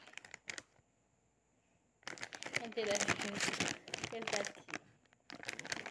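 A plastic packet crinkles in a hand.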